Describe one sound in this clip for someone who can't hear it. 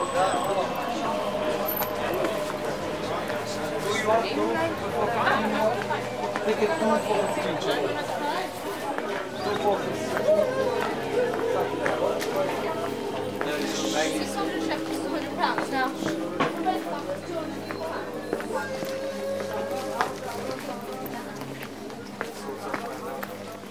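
A crowd of people chatters all around in a busy walkway.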